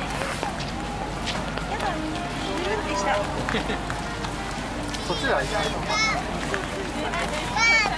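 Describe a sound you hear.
Footsteps squelch through wet mud.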